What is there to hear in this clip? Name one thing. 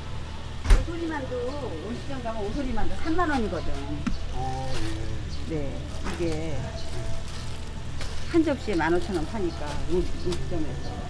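A woman talks nearby in a lively way.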